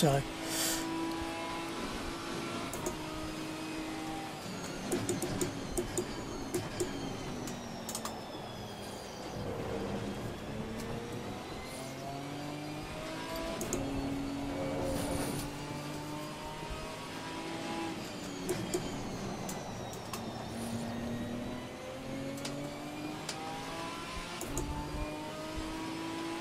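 A race car engine revs up and down as gears shift.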